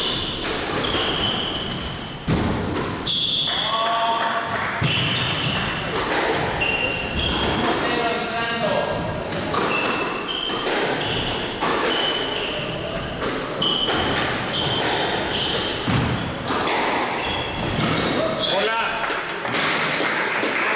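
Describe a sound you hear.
Shoes squeak sharply on a wooden floor.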